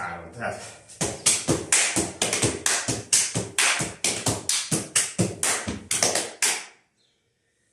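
Shoes tap and stamp sharply on a hard floor in a quick rhythm.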